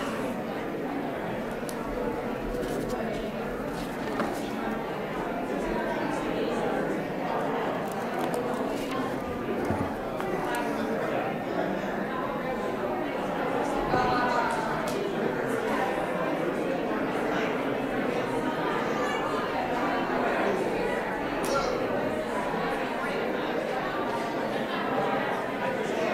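A crowd of men and women chat and greet each other in a large echoing hall.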